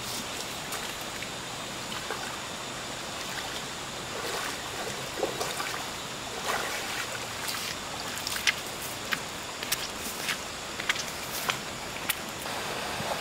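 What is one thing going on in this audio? Footsteps splash and squelch through shallow muddy puddles.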